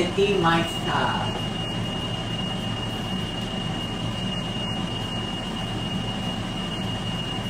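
Food sizzles quietly in a frying pan.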